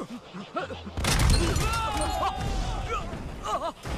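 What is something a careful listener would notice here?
A large vehicle explodes with a loud boom.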